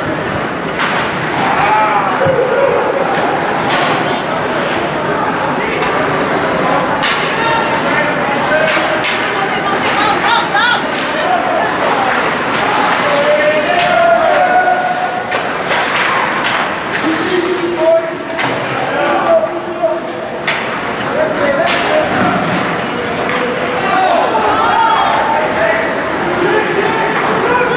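Skates scrape on ice.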